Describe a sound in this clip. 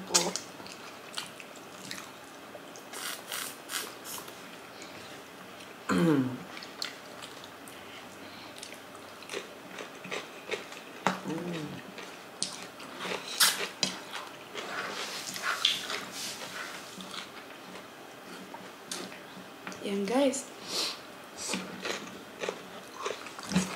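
Two women chew and smack their lips close to a microphone.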